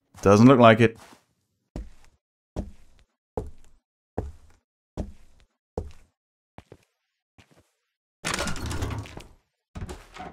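Footsteps thud slowly on wooden stairs and floorboards.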